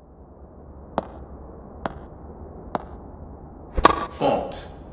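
A tennis ball is struck sharply with a racket.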